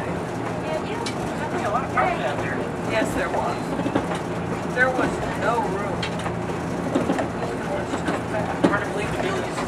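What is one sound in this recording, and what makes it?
A diesel railcar rumbles along the track, heard from inside.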